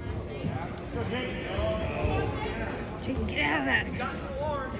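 Men shout encouragement loudly from the sidelines.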